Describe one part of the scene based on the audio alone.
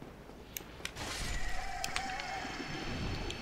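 A magic blast roars and hisses loudly.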